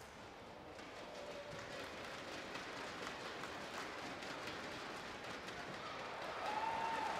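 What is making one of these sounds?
A large indoor crowd murmurs and chatters in an echoing hall.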